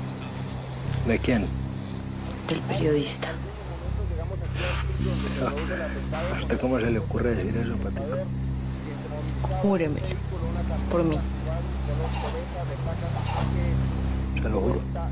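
A man speaks firmly and menacingly, close by.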